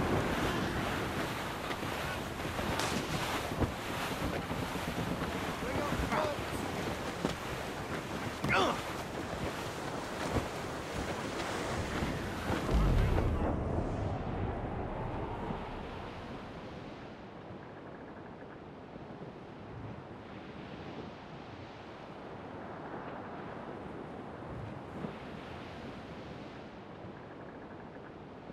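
Water rushes and splashes against a ship's hull.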